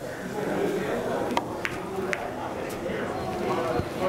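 Pool balls click together.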